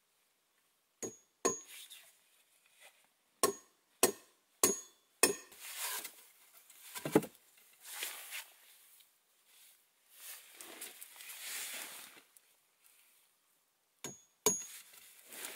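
Wooden logs knock against each other.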